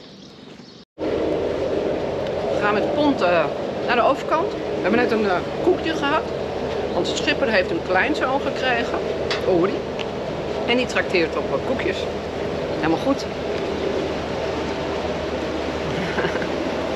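A woman talks with animation close by, outdoors.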